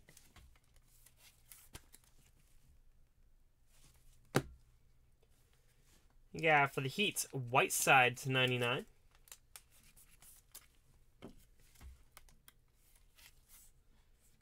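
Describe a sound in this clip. Plastic card cases click and rustle softly as they are handled.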